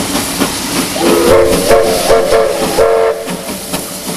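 A steam locomotive whistle blows loudly.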